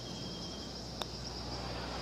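A putter taps a golf ball once.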